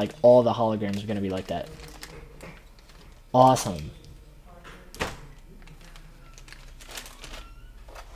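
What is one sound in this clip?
Plastic wrapping crinkles as hands handle it.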